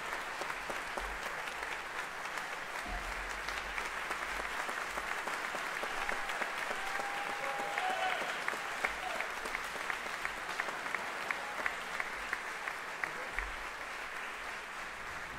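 A brass band plays in a large hall.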